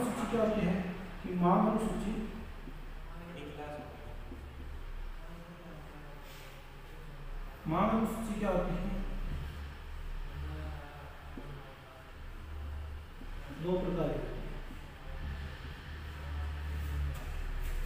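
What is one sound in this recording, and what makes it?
A man talks calmly.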